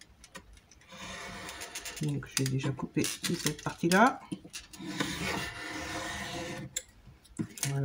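A pencil scratches along paper against a metal ruler.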